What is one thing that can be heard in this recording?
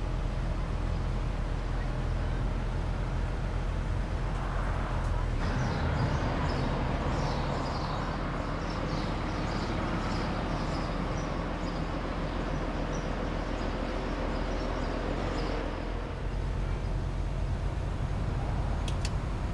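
A diesel school bus engine drones as the bus drives.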